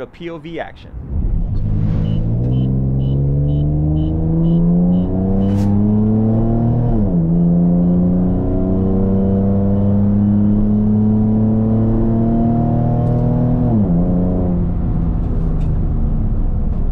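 A car engine revs up and shifts through gears as the car accelerates.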